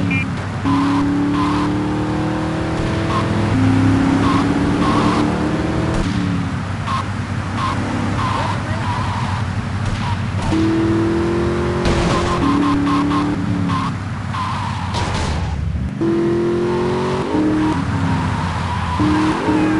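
An armoured van's engine drones as it drives.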